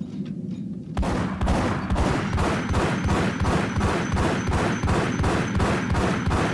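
Pistols fire rapid shots.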